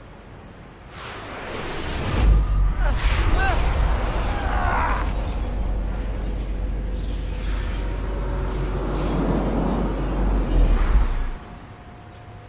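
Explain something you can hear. A deep burst of magical energy roars and rumbles loudly.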